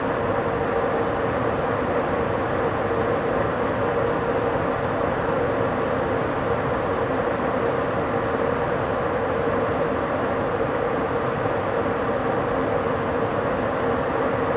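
Wind rushes past a moving train.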